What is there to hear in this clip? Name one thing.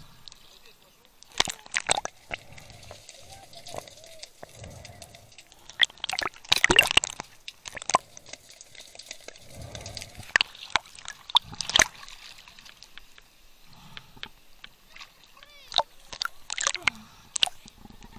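Muffled bubbling and gurgling sounds come from underwater.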